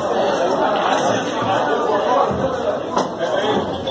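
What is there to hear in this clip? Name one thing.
A cue strikes a billiard ball with a sharp tap.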